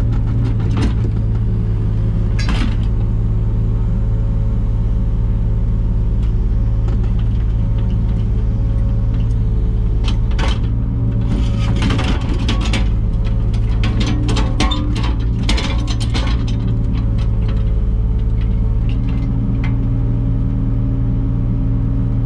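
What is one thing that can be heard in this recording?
A mini digger's diesel engine runs with a steady low hum, close by.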